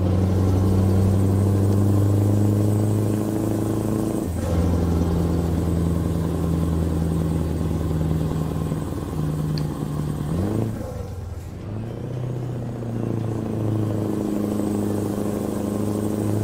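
A heavy truck engine drones steadily, dipping and rising in pitch as gears change.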